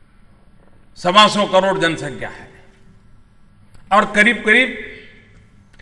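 An elderly man speaks forcefully through a microphone.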